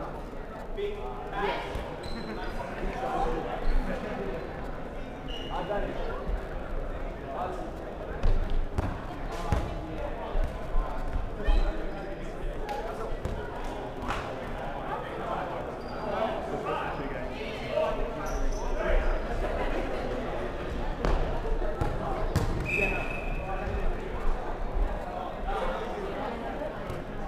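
Balls thump and bounce on a wooden floor in a large echoing hall.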